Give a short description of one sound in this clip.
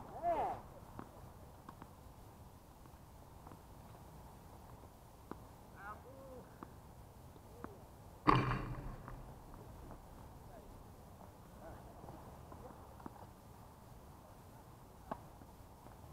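A tennis ball is struck by rackets again and again, with sharp pops.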